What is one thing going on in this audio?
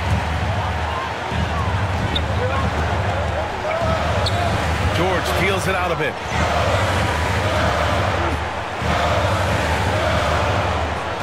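A large crowd roars steadily in an echoing arena.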